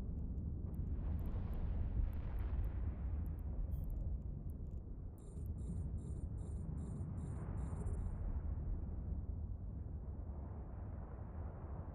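A deep, steady rumble of a spaceship engine drones on.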